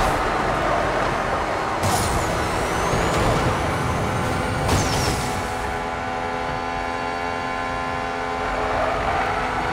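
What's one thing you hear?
A race car engine roars at high speed.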